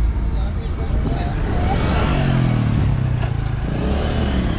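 A van's engine passes close by.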